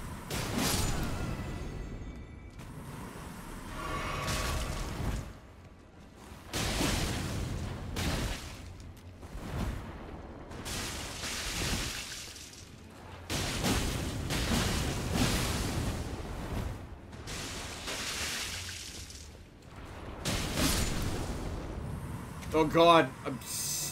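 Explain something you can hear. Blades swing and strike with heavy whooshing hits.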